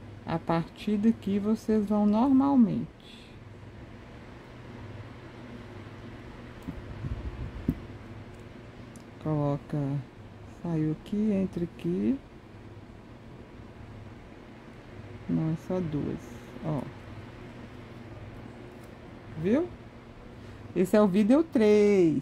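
Small beads click softly as fingers handle a beaded strap.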